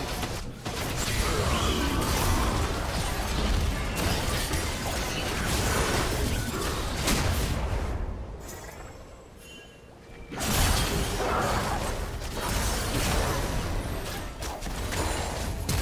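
Game spell effects and hits crackle and boom during a fight.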